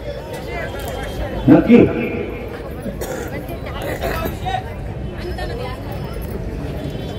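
An elderly man speaks with emphasis through a loudspeaker in an open outdoor space.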